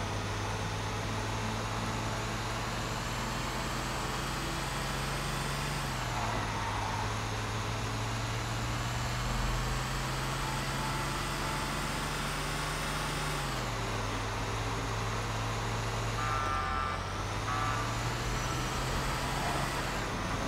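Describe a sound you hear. A heavy truck engine hums steadily, shifting gears as it speeds up.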